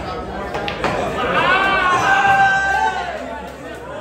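Billiard balls knock together and roll on a table.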